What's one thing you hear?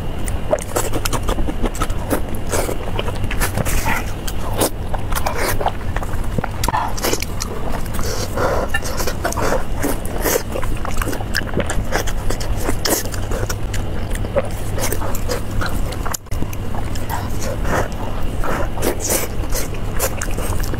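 A young woman chews and smacks loudly close to a microphone.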